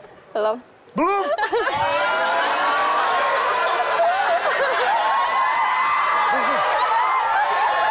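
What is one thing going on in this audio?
A group of people cheer and shout loudly.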